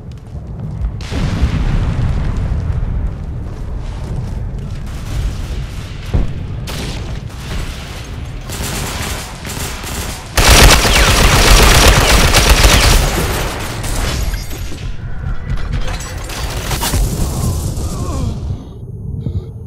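Rifle shots crack and boom.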